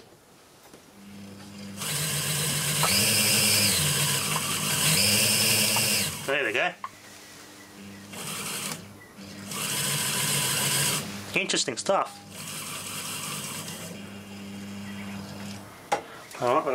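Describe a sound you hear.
An electric motor whirs and hums steadily, speeding up and slowing down.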